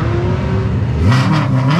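A race car engine revs sharply.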